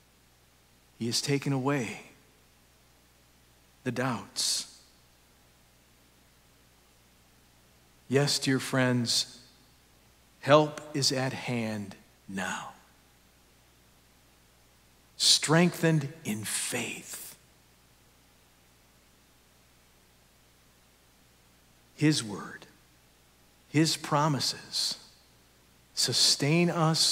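A middle-aged man speaks slowly and calmly with long pauses, through a microphone in a large echoing hall.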